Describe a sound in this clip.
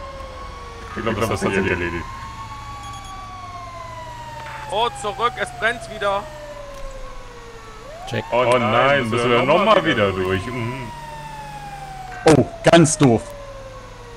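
A fire truck's horn blasts in short bursts.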